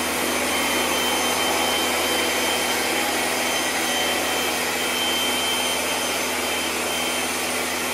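A pressure washer motor hums steadily.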